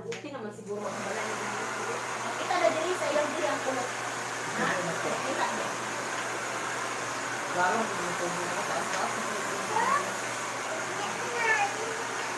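A hair dryer blows with a steady whooshing roar.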